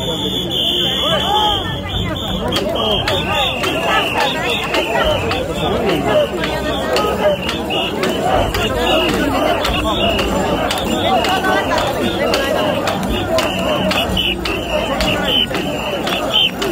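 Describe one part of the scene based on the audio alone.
Hands clap sharply in the crowd.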